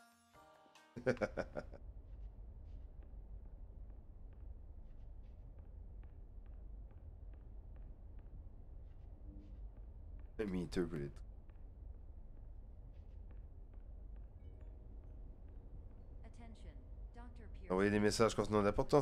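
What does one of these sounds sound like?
A man speaks into a microphone with animation, in short bursts.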